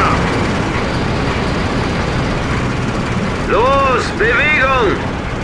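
Tank engines rumble and tracks clank as the tanks move.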